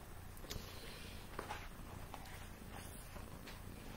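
Pages of a book rustle as a man leafs through them.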